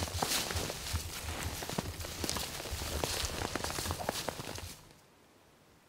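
Several people walk through dry leaves and snow, their footsteps crunching.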